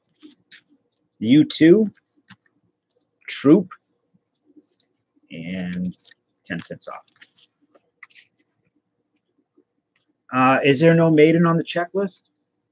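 Trading cards rustle and tap softly as they are handled close by.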